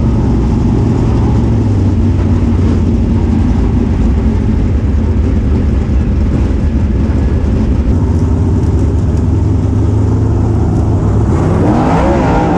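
A race car engine roars loudly and close throughout.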